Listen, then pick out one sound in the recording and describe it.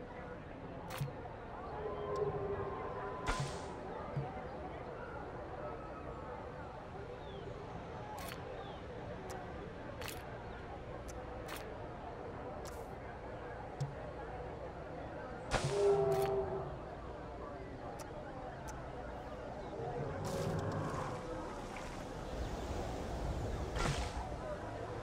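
Short interface clicks sound now and then as paths are laid out.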